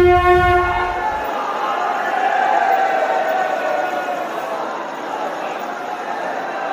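A festive crowd chatters and calls out outdoors.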